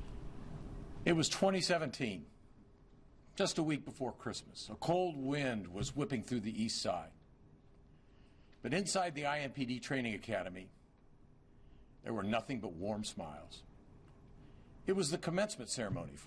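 A middle-aged man speaks calmly into a close microphone, pausing between phrases.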